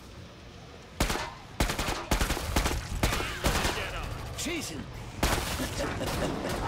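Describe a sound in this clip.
A gun fires rapid shots in quick bursts.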